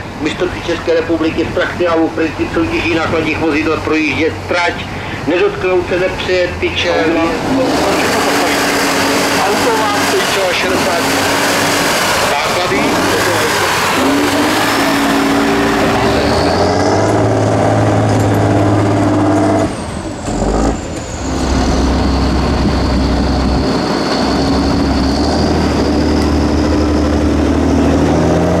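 A heavy truck engine roars and revs loudly.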